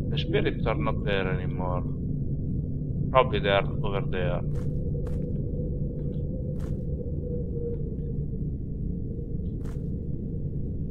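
Wind rumbles low and steady outdoors.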